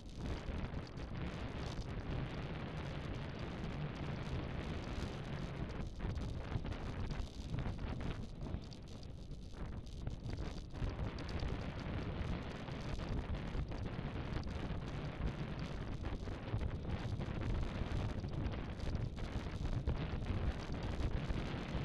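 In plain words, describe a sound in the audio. Wind buffets loudly across a microphone.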